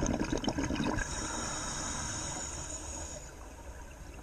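A diver breathes in through a regulator with a steady hiss.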